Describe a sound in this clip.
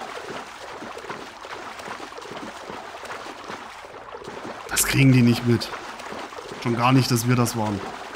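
Water splashes as a swimmer strokes through it.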